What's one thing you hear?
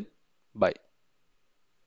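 A young man speaks briefly into a microphone, close by.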